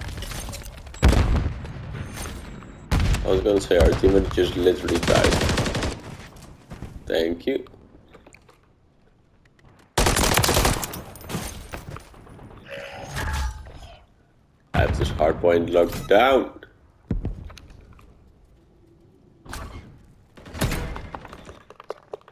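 Rifles fire loud rapid bursts.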